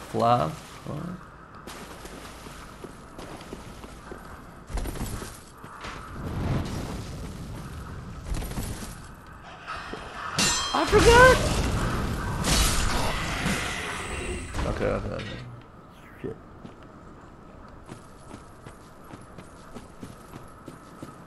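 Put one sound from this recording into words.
Footsteps crunch over stone.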